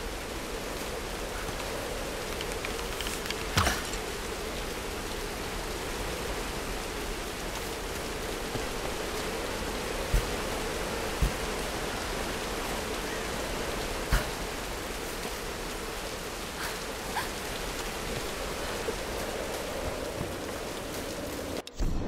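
Strong wind howls steadily.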